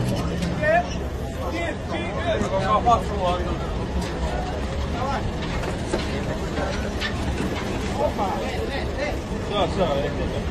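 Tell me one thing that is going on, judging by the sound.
A crowd of men shout and call out excitedly nearby.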